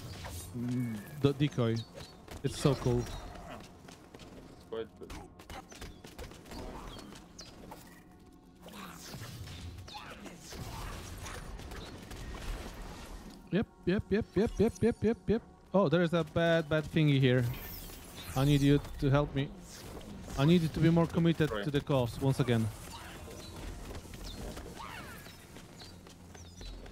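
Game sound effects of magic blasts and hits ring out in quick bursts.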